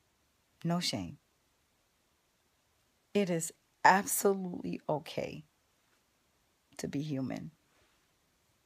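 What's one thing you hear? A woman speaks close to the microphone in short, casual phrases.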